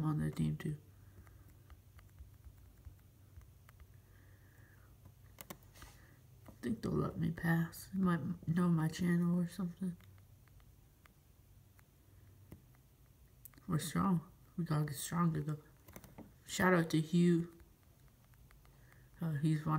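Fingers tap softly on a touchscreen.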